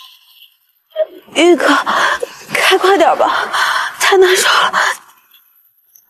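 A young woman speaks in a strained, upset voice close by.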